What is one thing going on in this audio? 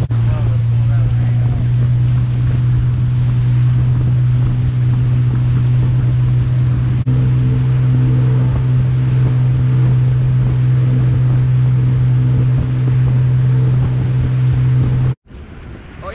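A boat engine drones steadily at high speed.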